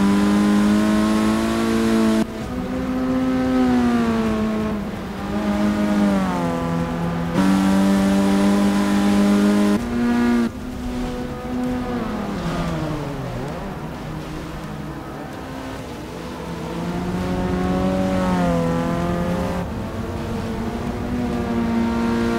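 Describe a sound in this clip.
Racing car engines roar and change pitch as the cars speed past.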